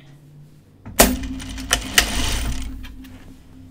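A sewing machine runs with a fast whirring hum.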